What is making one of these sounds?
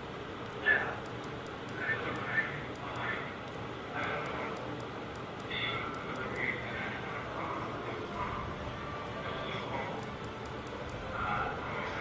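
Short soft menu ticks sound as a selection cursor moves.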